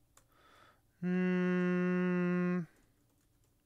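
A man hums a long, steady note close to a microphone.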